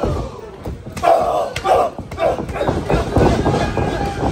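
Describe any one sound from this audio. A loud slap rings out as a wrestler chops a man's chest.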